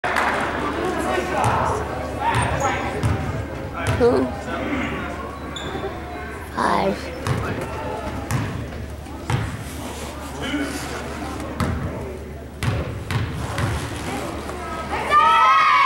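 Basketball players' sneakers squeak on a hardwood court.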